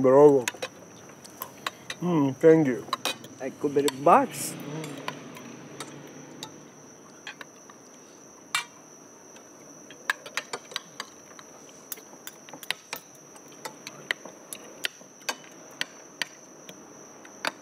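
Spoons and forks clink on plates.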